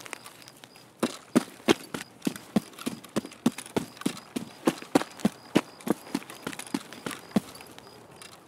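Footsteps tread steadily on gravel.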